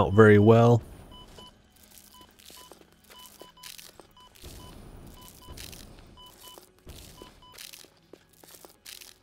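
Footsteps crunch softly through dry leaves.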